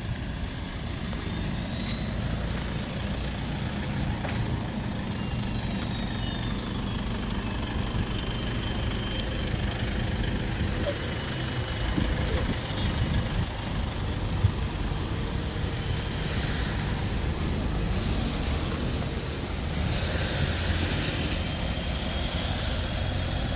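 Car engines idle with a low, steady rumble.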